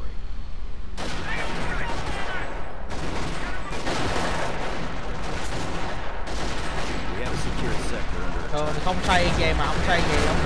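Rapid gunfire crackles in a battle.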